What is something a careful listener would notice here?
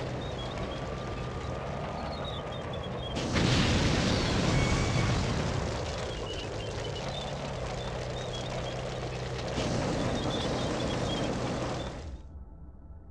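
Flames roar and crackle.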